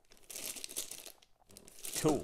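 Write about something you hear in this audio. A plastic bag crinkles in someone's hands.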